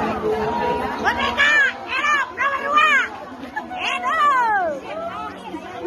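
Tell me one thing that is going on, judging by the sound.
Young voices in a crowd shout and cheer loudly.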